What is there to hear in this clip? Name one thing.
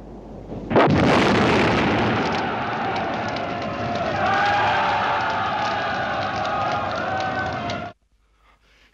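Flames roar steadily.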